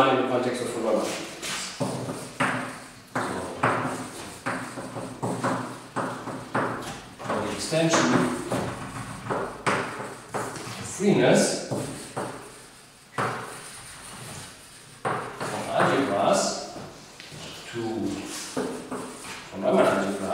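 A man lectures steadily, heard in a room with some echo.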